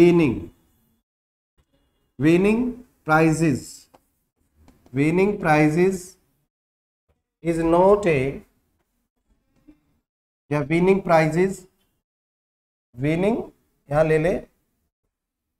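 A middle-aged man speaks calmly in short phrases, close to a microphone.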